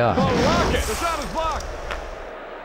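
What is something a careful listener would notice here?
A young man talks animatedly into a microphone, close by.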